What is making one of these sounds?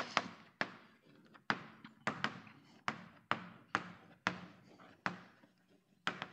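Chalk taps and clicks sharply on a blackboard in an echoing room.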